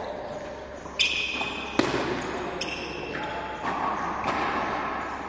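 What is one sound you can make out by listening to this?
A ball smacks hard against a wall, echoing through a large hall.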